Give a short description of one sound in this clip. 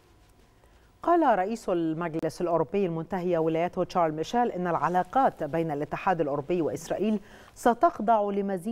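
A woman speaks steadily and clearly into a microphone, like a news reader.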